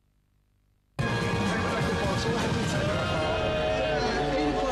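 Young men talk and laugh loudly close by, outdoors among a crowd.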